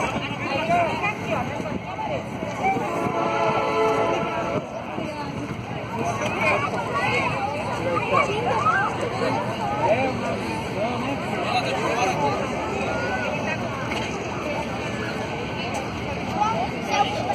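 Men, women and children chatter nearby outdoors.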